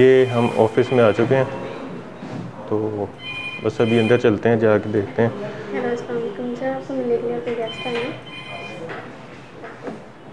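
A young woman talks on a phone nearby.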